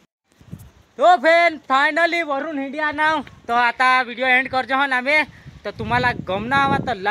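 A young man talks animatedly close to the microphone.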